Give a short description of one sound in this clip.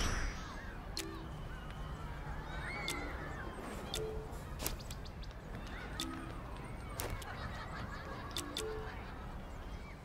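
Soft chimes and clicks sound as game menu pages scroll.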